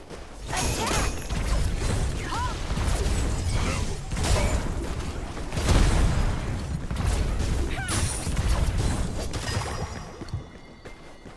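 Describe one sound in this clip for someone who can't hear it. Low booming impacts rumble during a fight.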